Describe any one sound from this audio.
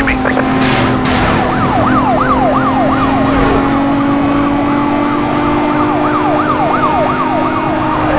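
A police siren wails rapidly close by.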